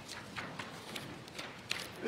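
Paper rustles as a young man turns a sheet.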